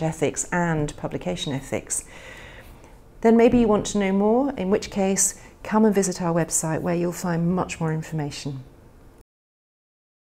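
A middle-aged woman speaks calmly and clearly, close to a microphone.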